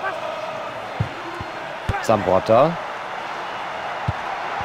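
A football is kicked with short dull thuds.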